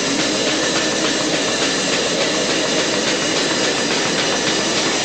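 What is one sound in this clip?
Cymbals crash and hiss.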